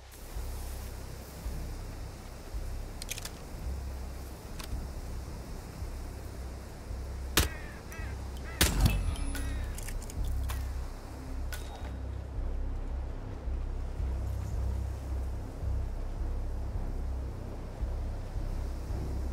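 Wind rumbles low and steady outdoors.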